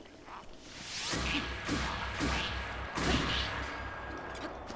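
A sword swooshes and strikes.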